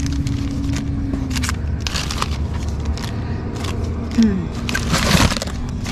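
Plastic packages rustle and crinkle as they are handled.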